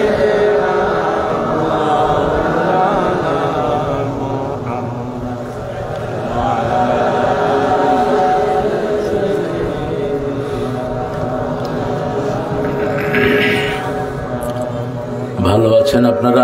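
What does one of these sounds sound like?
A man chants in a long, drawn-out melodic voice through a loudspeaker microphone.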